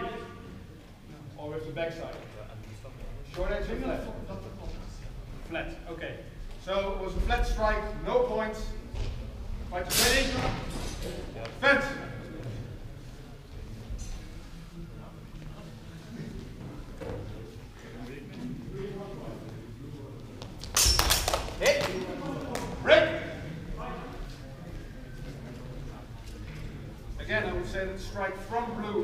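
A man calls out and talks loudly in a large echoing hall.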